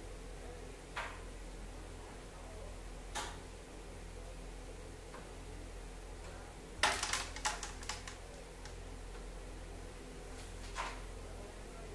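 A carrom striker snaps against wooden pieces, which clack across the board.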